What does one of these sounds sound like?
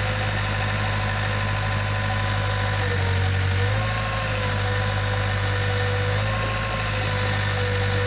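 A diesel engine rumbles steadily and its pitch shifts as it works harder.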